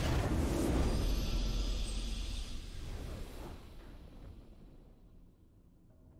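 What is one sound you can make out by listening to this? A triumphant game fanfare swells and fades away.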